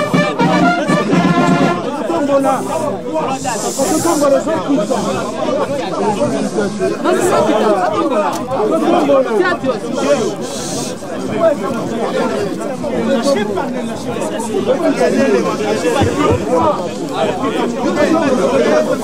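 A large crowd of men and women sing together outdoors.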